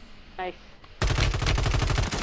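A rifle fires in a rapid burst.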